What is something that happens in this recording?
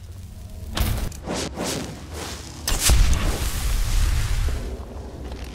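A magic spell bursts with a loud crackling whoosh.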